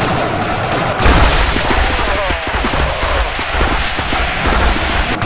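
Lightsabers hum and clash in a loud battle.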